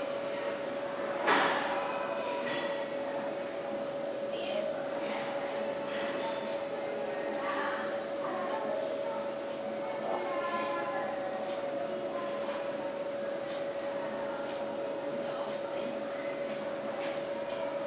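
A young woman speaks calmly, giving instructions.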